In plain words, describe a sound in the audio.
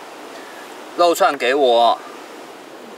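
A young man speaks with rising expression nearby.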